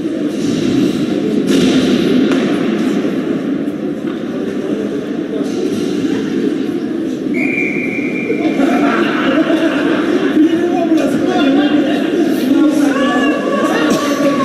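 A crowd of spectators chatters and shouts in a large echoing rink.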